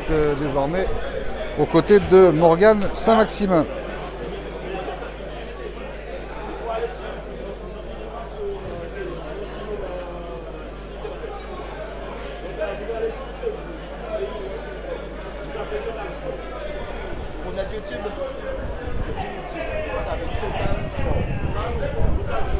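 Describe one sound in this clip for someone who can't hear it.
Men talk.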